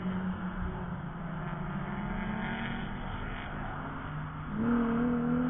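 A sports car engine roars as the car speeds past.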